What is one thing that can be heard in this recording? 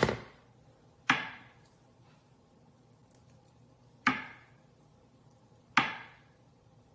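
A knife chops sharply on a cutting board.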